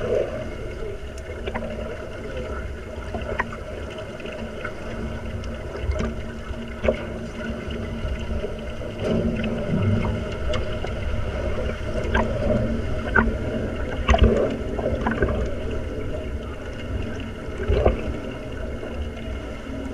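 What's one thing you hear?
Air bubbles from scuba regulators gurgle and rumble underwater.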